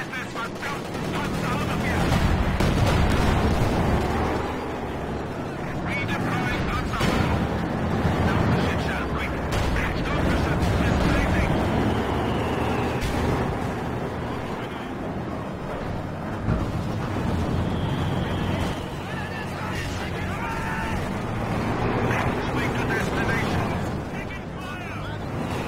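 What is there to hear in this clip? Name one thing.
Tank engines rumble and clank steadily.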